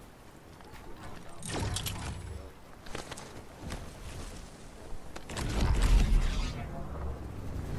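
Building pieces snap and clatter into place in quick succession.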